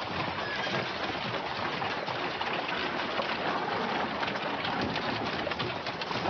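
Wooden wagon wheels creak and rattle over a dirt track.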